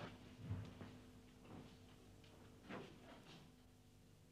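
Footsteps knock on a hard floor.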